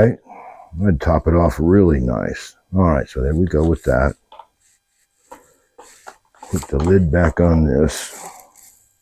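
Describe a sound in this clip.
An elderly man speaks calmly close by.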